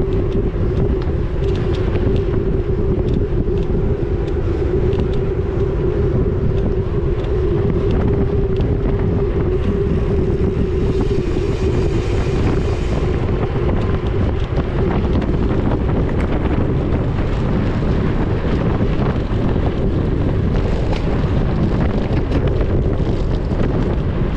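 Wind buffets loudly against a moving bicycle.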